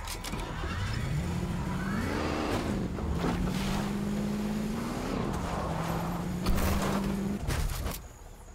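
A video game car engine revs as it drives.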